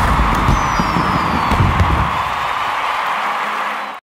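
Fireworks pop and crackle overhead.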